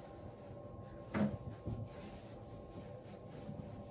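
Cloth rustles as a garment is handled and shaken.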